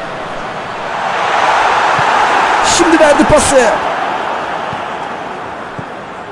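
A stadium crowd swells into a loud cheer and then dies down.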